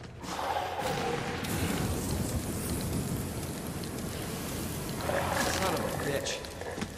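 Flames roar and crackle from a fiery blast.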